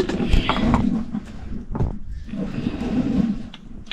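A wooden pestle pounds in a small container.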